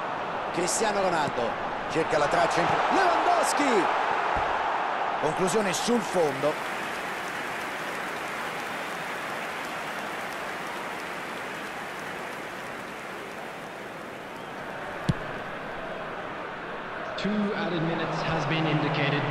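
A stadium crowd roars steadily in a large open arena.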